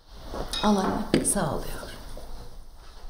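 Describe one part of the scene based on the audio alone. A middle-aged woman answers warmly.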